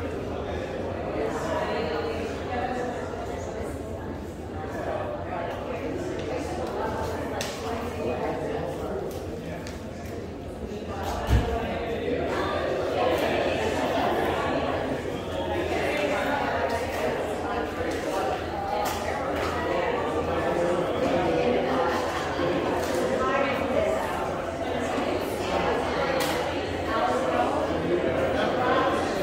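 A crowd of adults chatters nearby in an echoing room.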